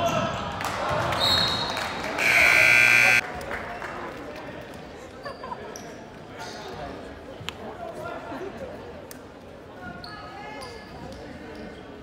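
A crowd of spectators chatters and murmurs in a large echoing gym.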